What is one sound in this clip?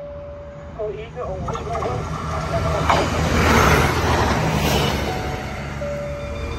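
A train rolls in along the rails with a loud rushing rumble.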